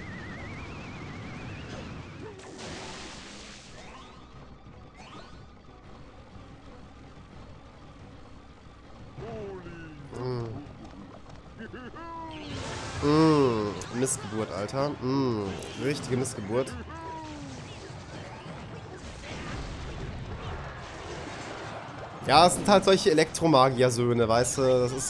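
Cartoonish battle sound effects clash and thud.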